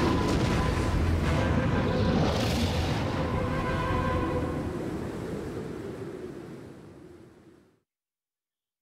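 Large wings beat with a loud rushing whoosh that slowly fades away.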